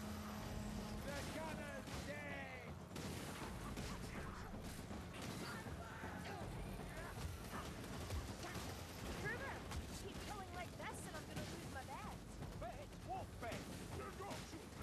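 Creatures shriek and squeal nearby.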